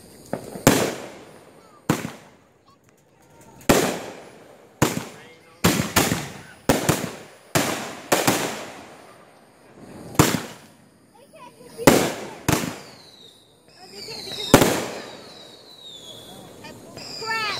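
Fireworks crackle and sizzle after bursting.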